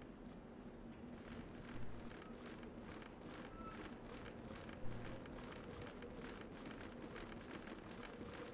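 Footsteps patter steadily on hard ground.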